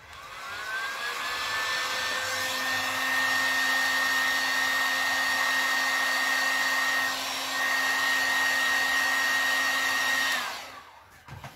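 A heat gun blows with a loud, steady whirring roar.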